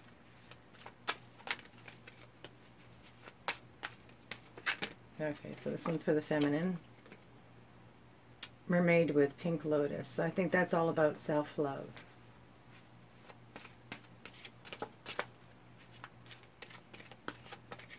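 Cards flick and slap together as they are shuffled.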